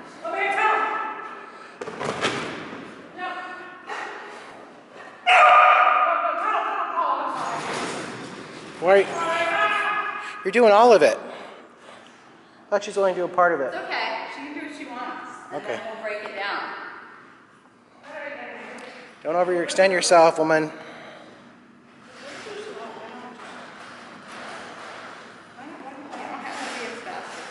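A woman talks to a dog with animation, in a large echoing room.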